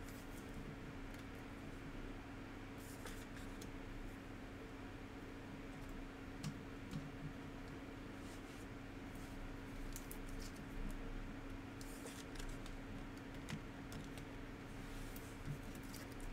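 Plastic card sleeves rustle and crinkle between fingers.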